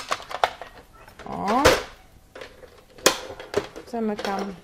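A plastic case clicks and knocks.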